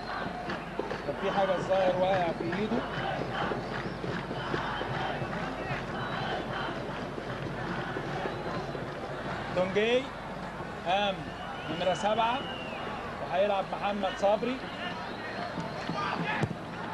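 A crowd murmurs and cheers in a large open stadium.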